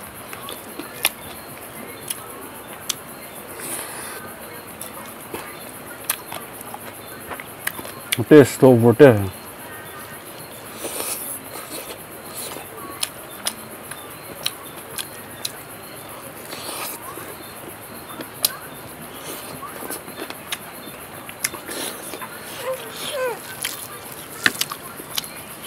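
A man chews food wetly and smacks his lips close to a microphone.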